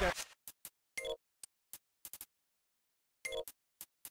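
Short electronic beeps sound a few times.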